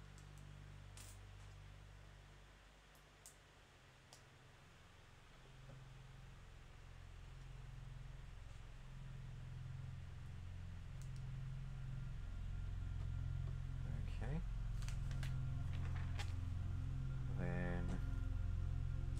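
Small plastic toy bricks click and rattle as they are handled.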